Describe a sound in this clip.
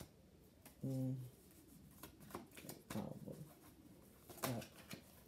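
Paper crinkles and rustles in a woman's hands.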